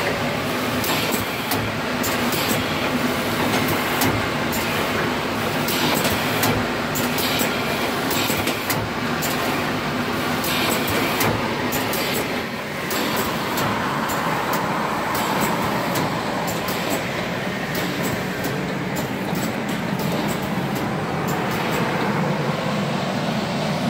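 Pneumatic cylinders click and hiss as a machine runs.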